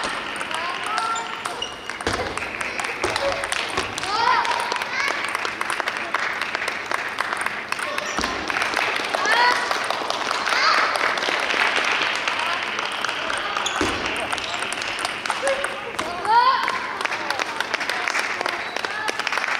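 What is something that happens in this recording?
A ping pong ball clicks sharply back and forth off paddles and a table, echoing in a large hall.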